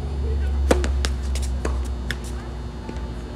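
A tennis ball is hit back and forth in a quick rally.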